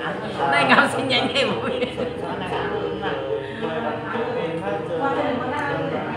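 An elderly woman talks cheerfully close by.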